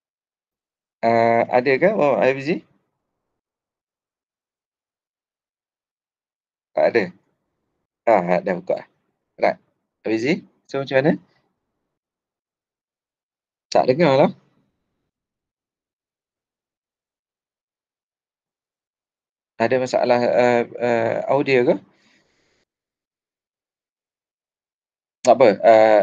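A man speaks calmly in short bursts over an online call.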